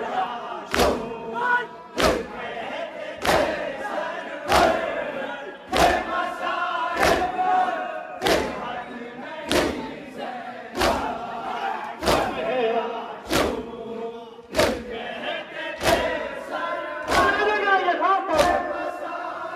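A large crowd of men beat their chests in loud, steady unison slaps.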